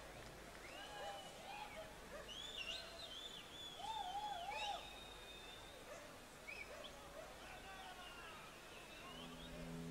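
A band plays in a large hall.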